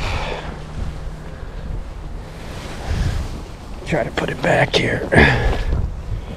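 A cloth sheet rustles as it is handled.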